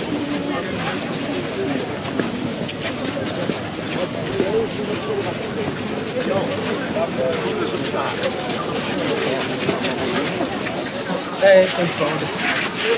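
A crowd murmurs and talks quietly outdoors.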